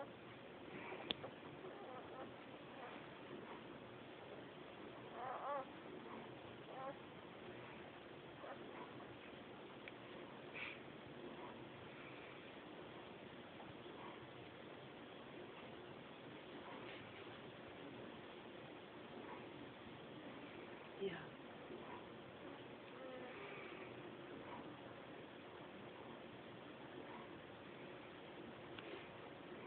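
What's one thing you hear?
Newborn puppies squeak and whimper softly close by.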